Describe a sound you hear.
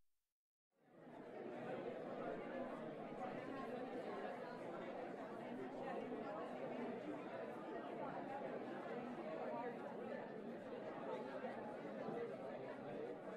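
A large crowd murmurs softly in a big arena.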